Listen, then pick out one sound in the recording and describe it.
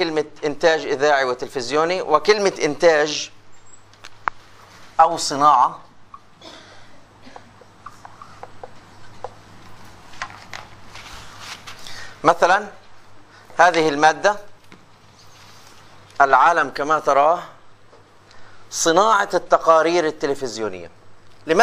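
A middle-aged man lectures in bursts of speech, heard through a microphone.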